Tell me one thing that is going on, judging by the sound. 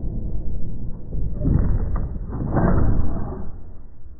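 Wooden doors swing shut with a thud.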